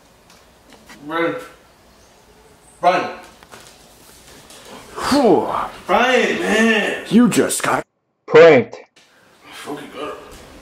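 A young man talks loudly and excitedly close by.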